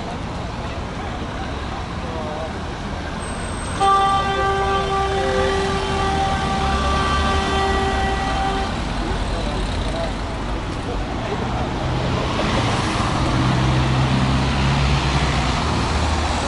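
Road traffic rumbles steadily nearby, outdoors.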